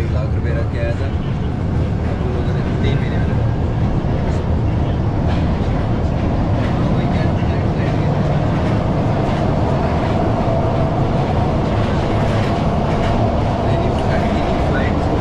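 A metro train rumbles and rattles loudly along the tracks.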